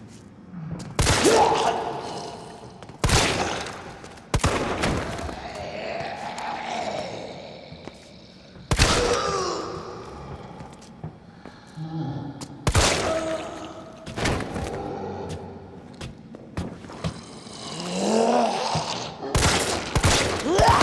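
Pistol shots ring out sharply, one at a time.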